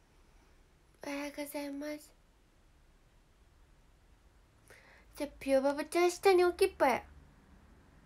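A young woman speaks softly and playfully close to a microphone.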